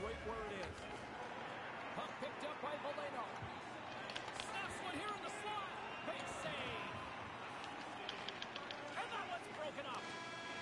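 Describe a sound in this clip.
A crowd in a large arena cheers and murmurs steadily.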